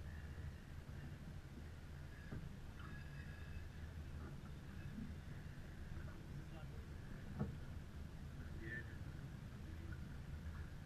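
Water splashes against a sailboat's hull.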